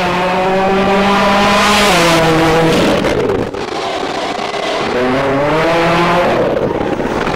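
A turbocharged four-cylinder rally car races past at high revs.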